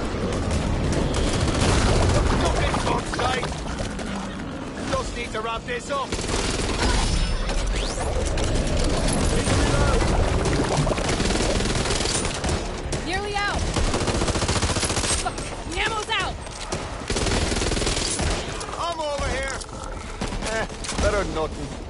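Creatures screech and snarl.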